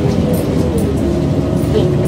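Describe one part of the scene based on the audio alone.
A bus passes close by.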